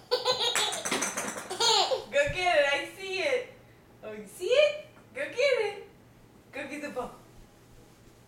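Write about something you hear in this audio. A baby laughs and squeals happily.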